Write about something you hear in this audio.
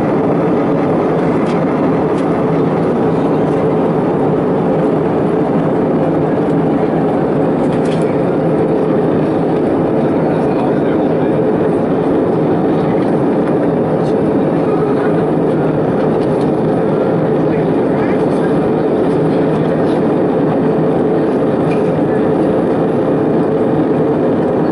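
A jet engine roars steadily inside an airplane cabin in flight.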